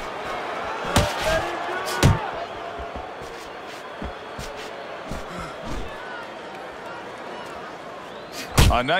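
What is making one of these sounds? Punches thud against a boxer's body and gloves.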